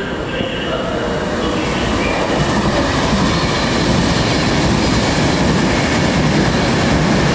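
A train rushes past nearby with a rising roar.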